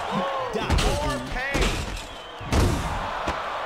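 Heavy punches land with thuds.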